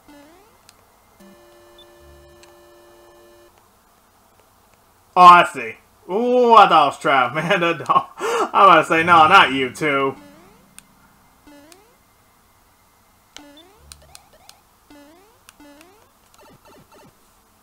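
Short rising video game jump chirps sound again and again.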